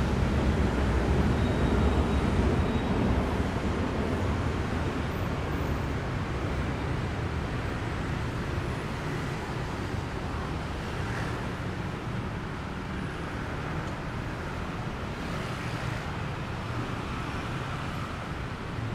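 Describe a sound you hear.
Traffic rumbles steadily along a busy street outdoors.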